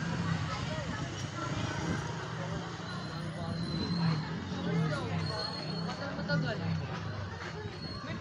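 A little girl talks and babbles close by.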